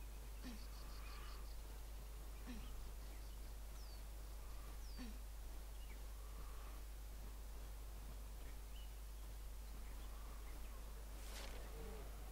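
Feet clank faintly on metal ladder rungs.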